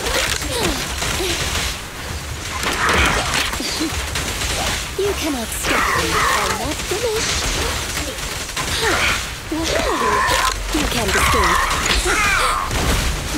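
Electric zaps and sword slashes crackle in rapid bursts.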